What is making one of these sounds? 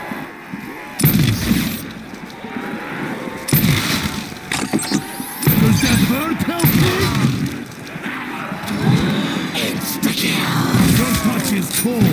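A heavy gun fires with loud blasts.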